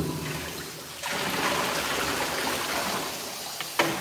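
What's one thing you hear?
Water pours from a bucket over a dog and splashes.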